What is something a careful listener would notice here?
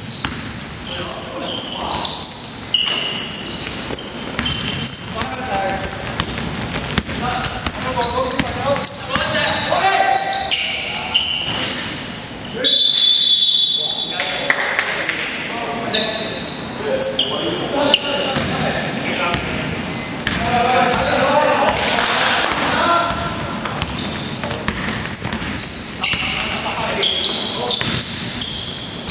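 Sneakers squeak sharply on a hard court floor, echoing in a large hall.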